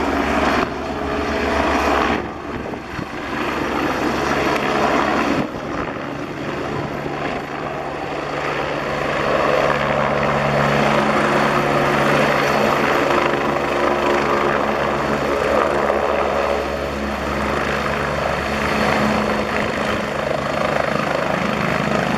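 A twin-turbine helicopter hovers low, its turbines whining and rotor thudding.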